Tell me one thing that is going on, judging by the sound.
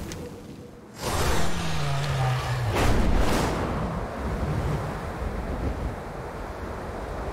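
Wind rushes steadily past a flying winged creature.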